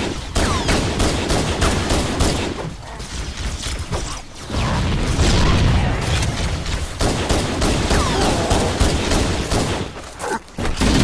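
A pistol fires in sharp, rapid shots.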